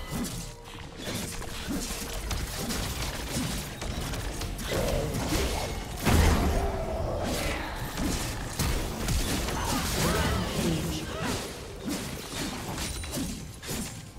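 Magical spell effects whoosh, burst and crackle in a fight.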